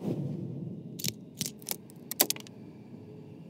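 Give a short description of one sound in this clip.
A metal key clicks and turns in a lock.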